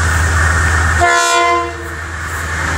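A train horn sounds briefly.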